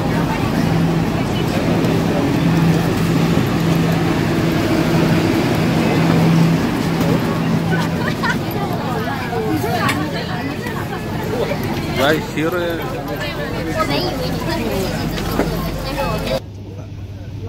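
A crowd of people talk loudly all around.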